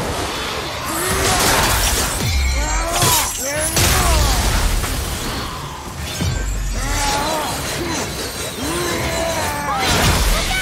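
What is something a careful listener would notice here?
Fiery blasts whoosh and crackle.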